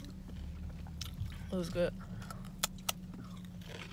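A young woman crunches on a crisp snack close by.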